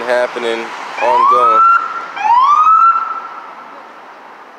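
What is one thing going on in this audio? A police siren whoops in short rising bursts.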